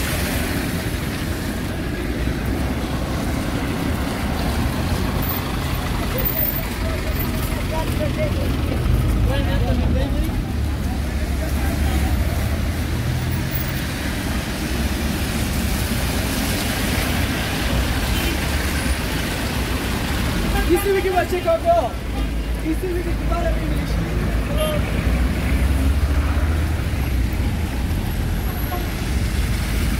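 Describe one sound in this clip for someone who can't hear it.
Tyres hiss and splash through slush.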